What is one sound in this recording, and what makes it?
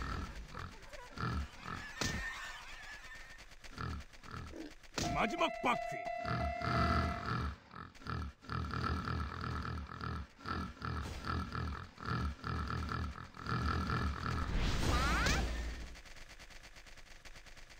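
Upbeat game music plays.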